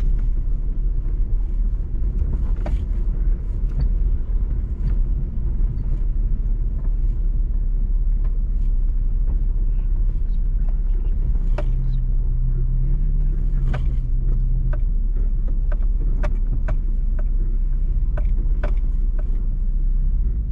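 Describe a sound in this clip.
A vehicle's body rattles and knocks over bumps.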